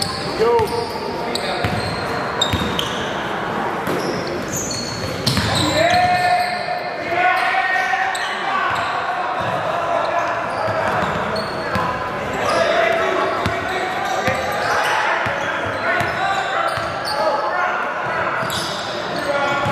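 Spectators chatter and shout in a large echoing gym.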